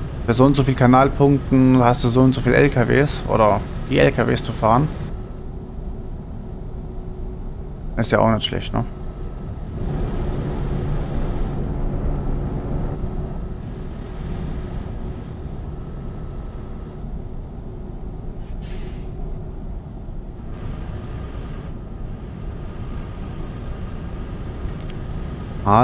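A simulated truck engine drones at cruising speed.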